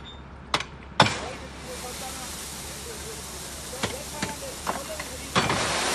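Gravel pours out of a tipping truck bed with a steady rushing hiss.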